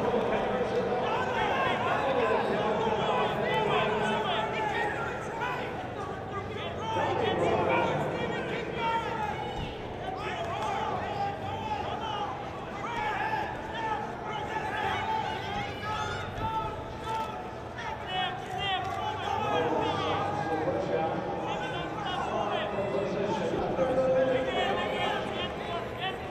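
Shoes squeak on a wrestling mat.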